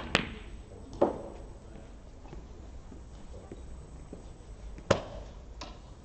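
Snooker balls knock against each other and roll into a pocket.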